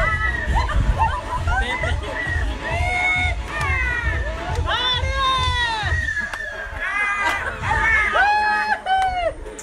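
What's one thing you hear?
A crowd of young people shouts and cheers loudly.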